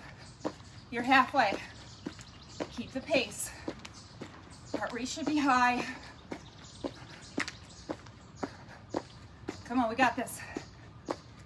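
A young woman talks calmly in short bursts, close by.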